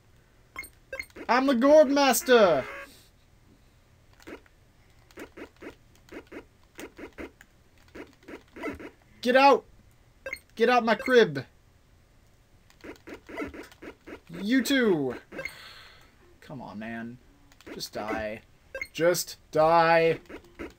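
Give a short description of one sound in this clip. Short electronic jingles with bending tones play from a retro video game.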